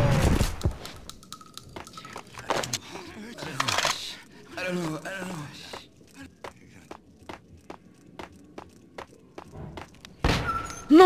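Footsteps tap quickly on hard steps and floor.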